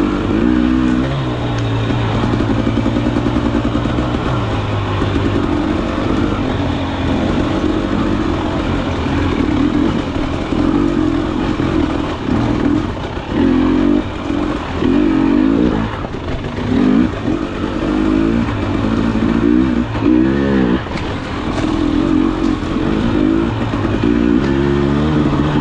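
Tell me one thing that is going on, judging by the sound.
Tyres crunch and rattle over rocks and dirt.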